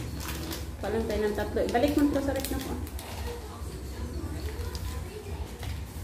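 A plastic packet crinkles in hands.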